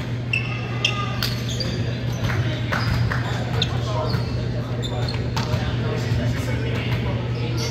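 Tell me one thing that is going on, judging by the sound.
Young adults chatter and call out in a large echoing hall.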